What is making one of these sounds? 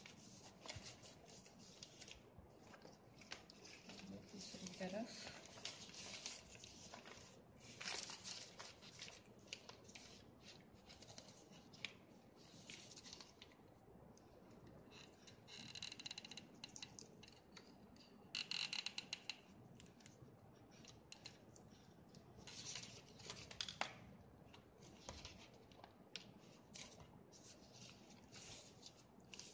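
Woven plastic sacking rustles and crinkles under hands.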